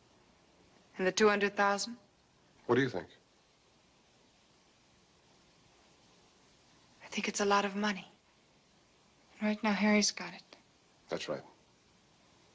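A young woman speaks quietly and calmly close by.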